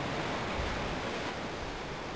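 Water laps and washes steadily.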